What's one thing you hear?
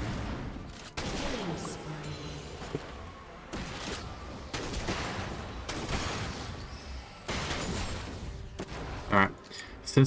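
Magic spells whoosh and crackle in quick bursts.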